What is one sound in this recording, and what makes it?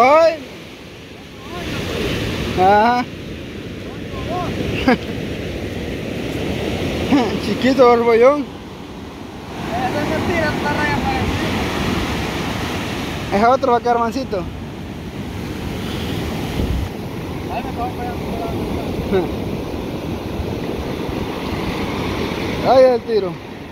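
Waves break and wash up the shore steadily, outdoors.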